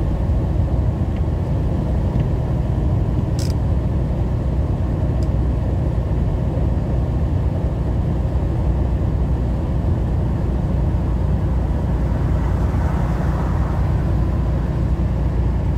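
Tyres hum on wet pavement.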